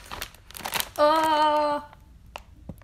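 A young woman squeals with a long, high voice.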